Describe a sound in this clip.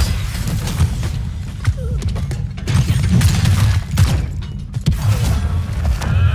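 Magic spells burst and crackle in a game battle.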